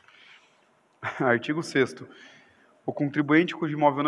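A man speaks calmly into a microphone in a room with some echo.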